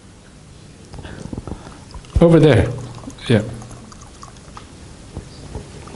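Liquid pours from a flask into a mug.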